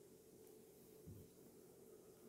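A man's footsteps thud softly on a floor.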